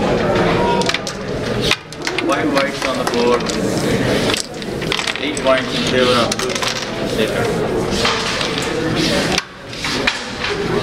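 Several men talk with animation close by.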